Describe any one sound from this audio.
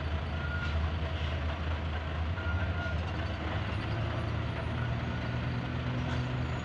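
A truck engine rumbles low and steady close by.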